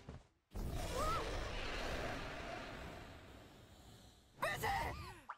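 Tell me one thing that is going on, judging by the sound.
A winged creature roars loudly.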